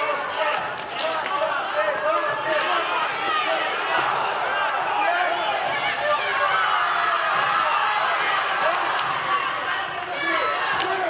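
A crowd cheers and shouts in a large arena.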